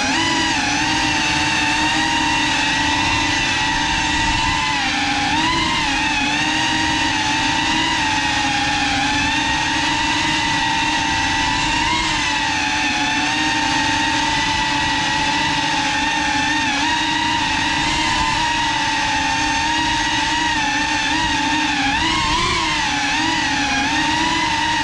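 A small drone's propellers whine loudly and steadily, their pitch wavering as it flies.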